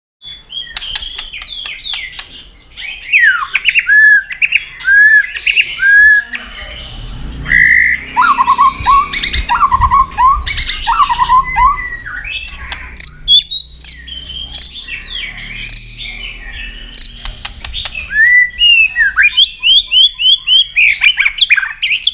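A songbird sings loud, varied whistles and chirps close by.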